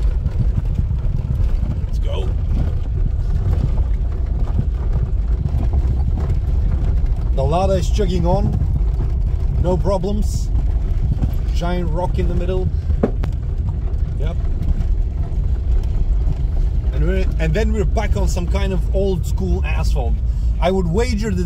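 Tyres crunch and rattle over a rough gravel track.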